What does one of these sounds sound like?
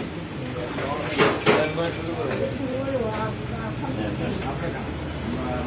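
A metal spoon scrapes and clinks against a cooking pot.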